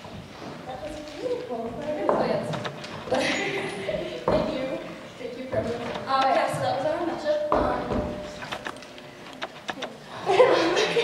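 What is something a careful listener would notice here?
A teenage girl speaks with animation into a microphone, heard through loudspeakers.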